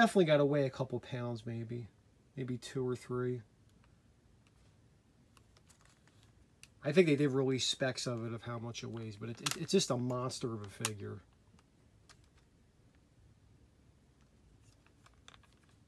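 A plastic figure's joints click softly as hands move the figure.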